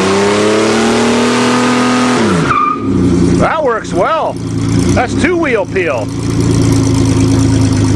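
A diesel truck engine revs hard, then drops to a rough idle.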